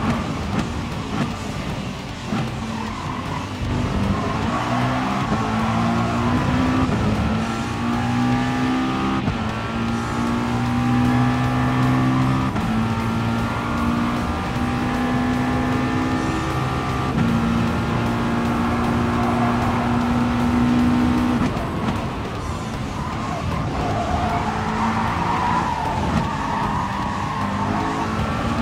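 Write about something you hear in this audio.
A racing car engine roars, climbing in pitch and dropping back with each gear change.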